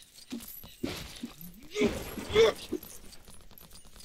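Plastic bricks clatter as an object bursts apart.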